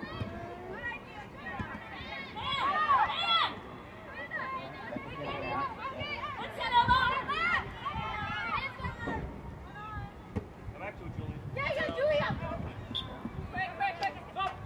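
Young women shout and call out to each other outdoors.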